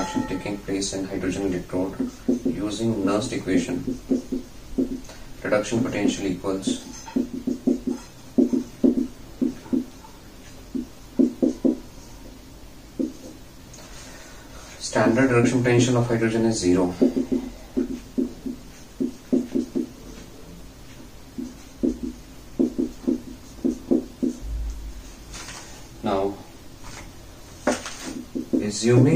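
A man lectures with animation, close by.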